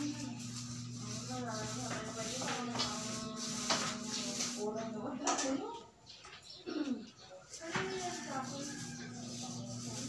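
A paint roller rubs softly against a wall.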